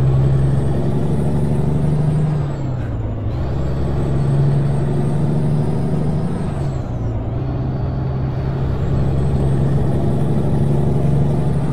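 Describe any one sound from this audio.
A heavy truck engine drones loudly, its pitch dropping briefly twice as gears shift.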